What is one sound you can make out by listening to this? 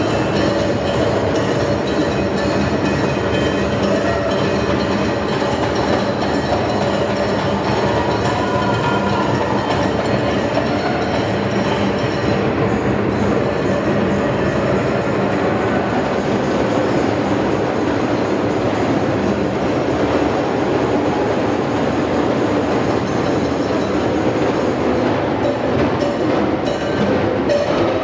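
Several hand drums beat a fast, steady rhythm.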